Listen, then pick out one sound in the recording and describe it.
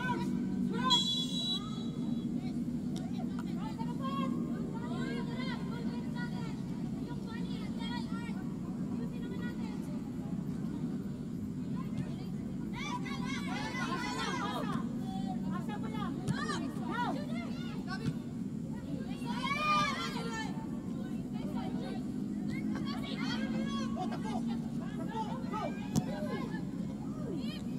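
Young women players shout to each other outdoors across an open field.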